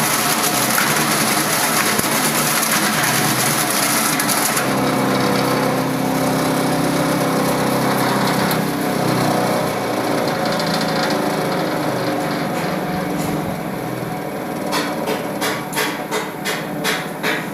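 A machine motor hums and whirs steadily.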